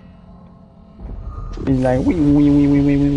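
A large glowing ring of energy hums loudly as it powers up.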